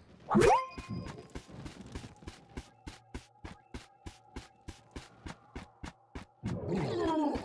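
Quick, steady footsteps tap along.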